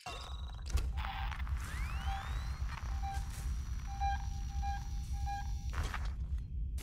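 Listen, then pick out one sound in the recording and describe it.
An electronic tracker beeps in short repeated pulses.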